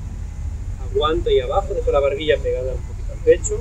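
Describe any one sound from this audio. A man speaks calmly nearby outdoors.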